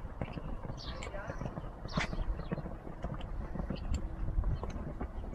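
Horse hooves thud on soft sand at a canter.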